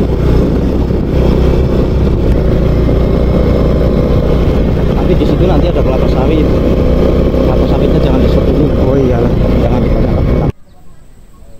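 A motorbike engine rumbles steadily, then cuts off suddenly.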